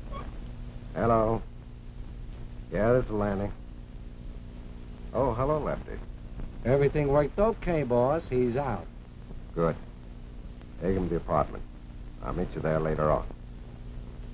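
A man speaks calmly into a telephone close by.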